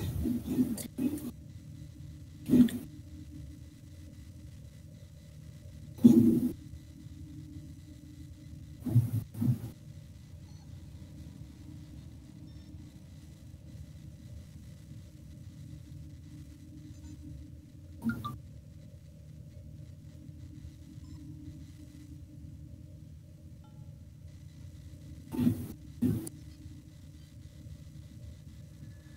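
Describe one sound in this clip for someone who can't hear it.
A low engine hum drones steadily throughout.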